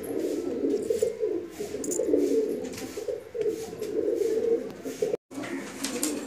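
Pigeons coo softly and steadily.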